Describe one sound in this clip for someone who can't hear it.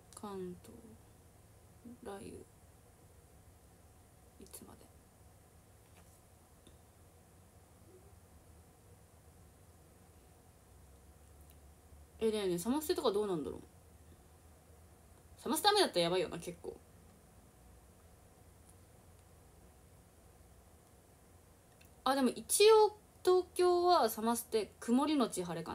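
A young woman speaks softly and closely into a microphone, in short bursts with pauses.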